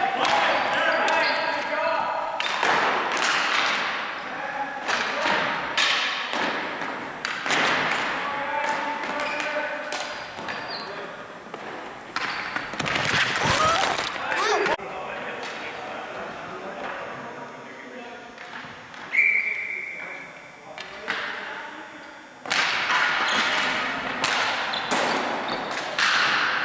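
Sticks clack and slap on a ball and hard floor.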